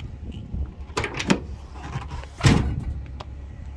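A pickup truck's tailgate unlatches with a click and drops open with a heavy thud.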